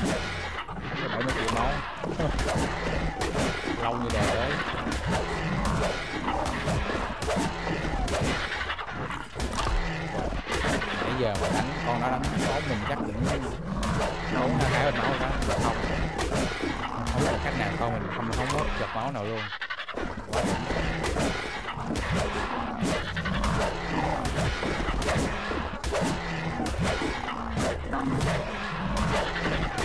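A creature strikes another with repeated thudding blows.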